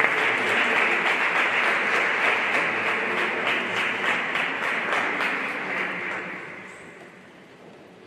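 A large crowd applauds in a big echoing hall, then the applause dies away.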